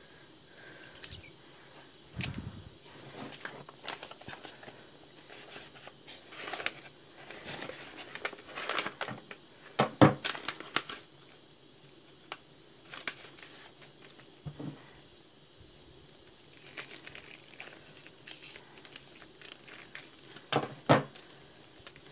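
A knife clicks and taps against a hard surface.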